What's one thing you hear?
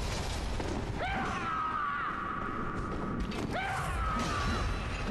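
A creature shrieks during a fight.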